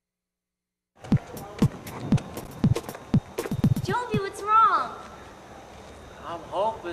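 A teenage boy talks outdoors.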